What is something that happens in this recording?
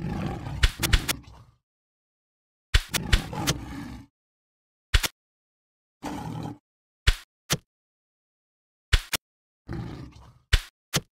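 Video game battle sound effects thud and clash in short bursts.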